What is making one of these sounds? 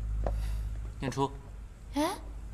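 A young woman calls out a name nearby.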